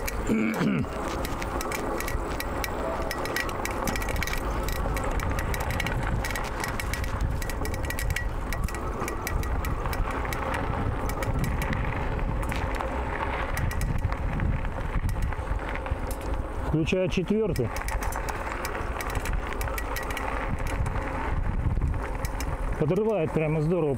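Wind buffets a close microphone throughout.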